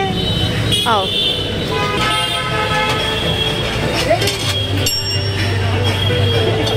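A small bell rings.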